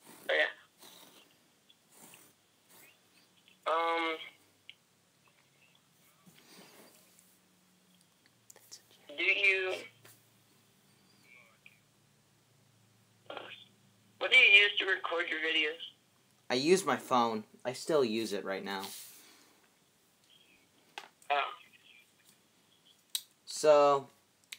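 A teenage boy talks in short bursts close to the microphone.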